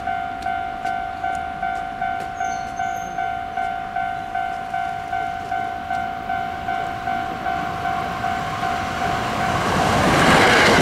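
A level crossing bell rings with a steady, repeating clang.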